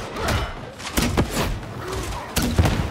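Gunfire cracks in rapid bursts.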